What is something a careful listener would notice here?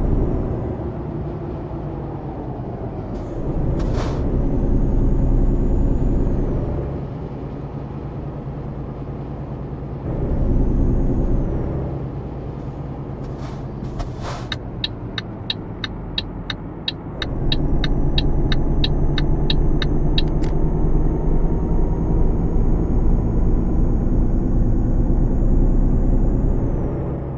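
A truck engine drones steadily, rising and falling as it speeds up and changes gear.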